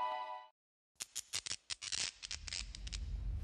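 Large lamps switch on with a series of sharp clunks.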